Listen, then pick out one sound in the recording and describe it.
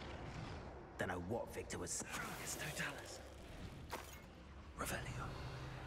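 A magic spell crackles and bursts with sharp snaps.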